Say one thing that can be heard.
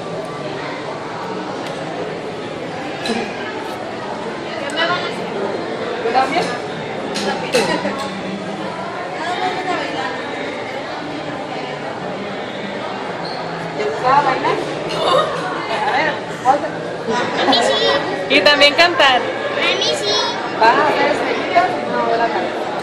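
A murmur of voices fills a busy room.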